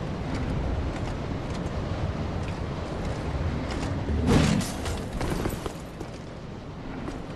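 Armour clanks with heavy footsteps.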